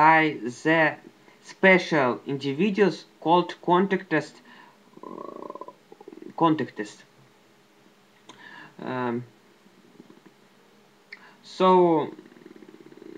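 A young man speaks close to a microphone in short bursts with pauses.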